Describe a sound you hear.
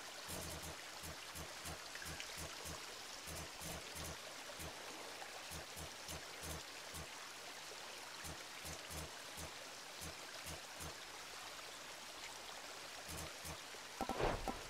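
Soft game menu clicks tick rapidly as a cursor moves between options.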